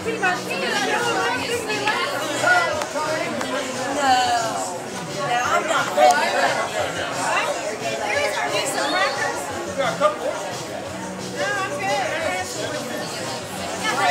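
A young woman talks close by.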